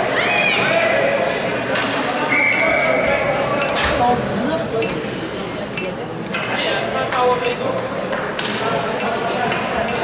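Hockey sticks clack against the ice and the puck.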